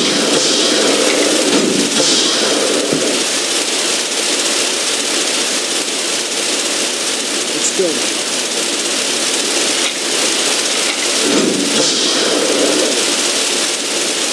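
A fire hose sprays water with a steady hiss.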